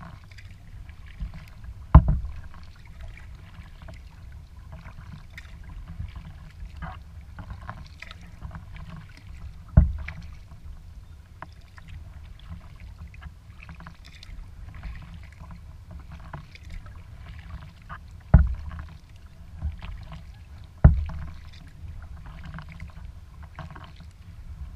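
Wind rumbles across an open lake.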